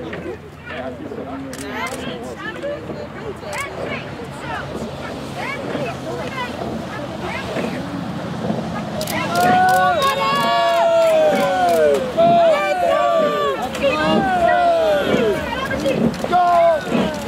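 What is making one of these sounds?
Oars dip and splash rhythmically in calm water.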